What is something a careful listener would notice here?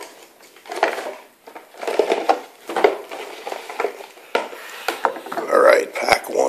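Cardboard boxes knock and slide on a wooden table.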